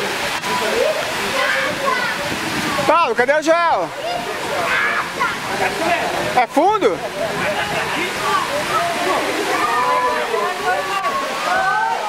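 A swimmer splashes through water close by.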